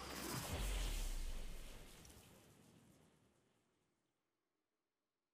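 A shimmering magical swell rings out and slowly fades away.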